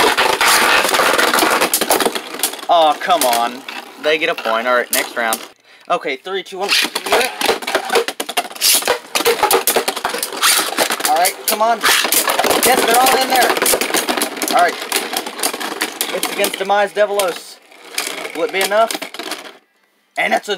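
Spinning tops whirr and clatter against each other in a plastic bowl.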